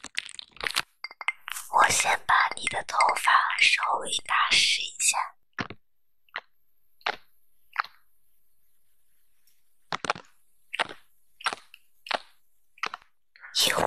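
Fingers tap and rub against a glass bowl.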